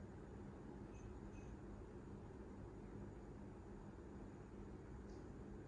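A television plays quietly in a room.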